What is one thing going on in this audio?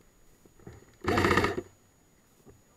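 A paintball gun fires a short rapid burst close by.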